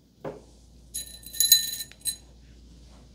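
Small objects clink and rattle briefly on a hard surface.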